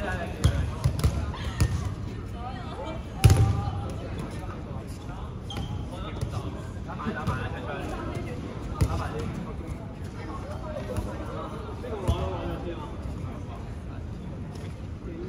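Young people chatter and call out across the hall.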